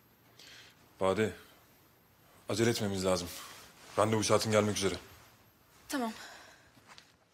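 A man speaks tensely in short, low phrases nearby.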